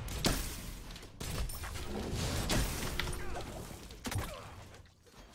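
Sharp game sound effects of blows and bursts ring out.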